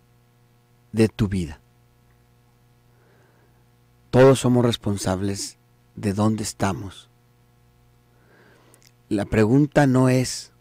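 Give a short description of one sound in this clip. A man speaks calmly into a microphone close by, in short bursts with pauses.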